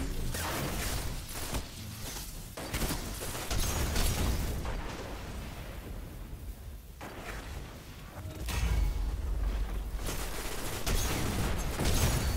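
A blade swishes and strikes.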